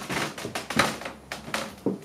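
Shoes step on a wooden floor.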